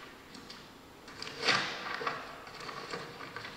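Paper rustles as pages are turned.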